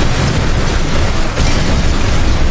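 Metal vehicles crash together with a heavy bang.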